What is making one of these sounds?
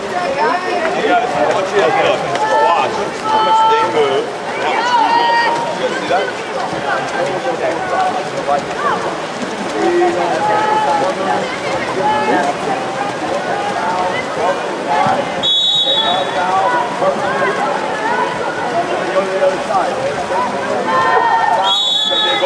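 A crowd of spectators shouts and cheers from the poolside.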